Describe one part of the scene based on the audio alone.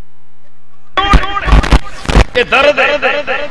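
An elderly man sings into a microphone.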